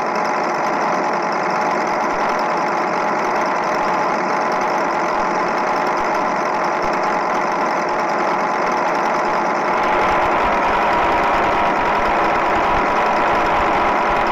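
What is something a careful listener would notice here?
A truck engine hums steadily at high speed.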